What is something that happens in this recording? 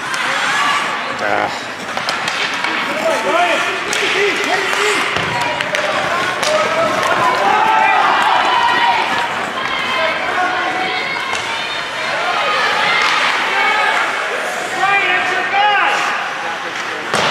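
Skates scrape and carve across ice.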